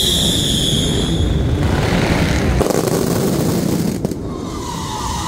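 Fireworks boom loudly.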